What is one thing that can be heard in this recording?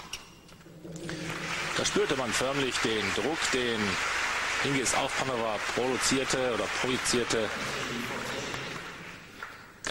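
A crowd applauds in a large echoing hall.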